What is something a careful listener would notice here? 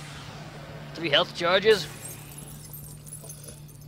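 A magical burst whooshes and crackles, then fades.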